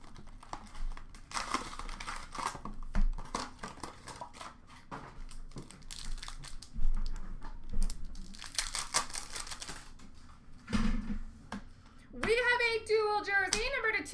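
Hands rustle and crinkle foil card packs.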